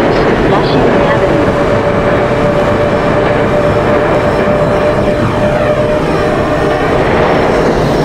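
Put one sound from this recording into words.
A subway train rumbles and rattles steadily along the tracks at speed.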